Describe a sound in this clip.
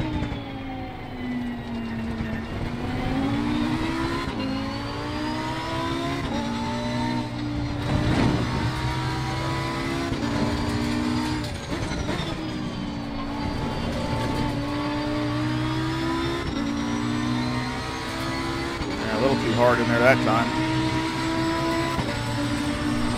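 A racing car engine roars, rising in pitch through each gear and dropping sharply at each gear change.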